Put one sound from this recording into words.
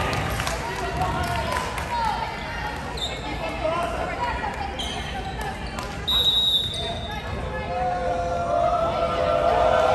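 A volleyball is struck with a hand with a sharp slap.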